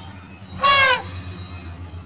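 An elephant trumpets loudly.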